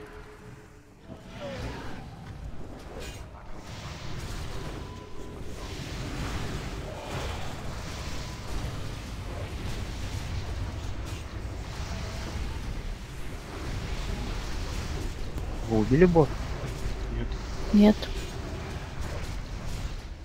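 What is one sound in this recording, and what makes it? Spell effects and combat sounds of a game crackle and boom.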